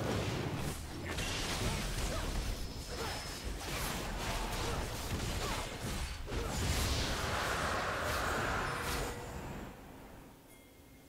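Video game combat effects clash and crackle.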